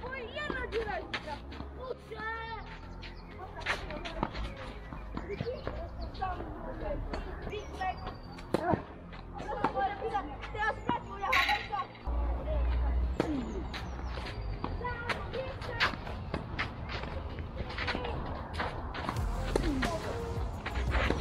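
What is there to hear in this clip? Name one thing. Shoes scuff and slide on a clay court.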